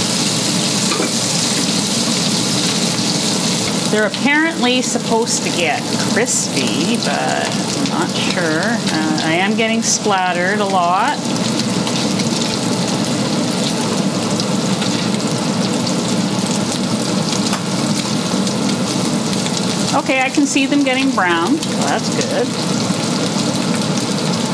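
Fish sizzles loudly in hot oil in a pan.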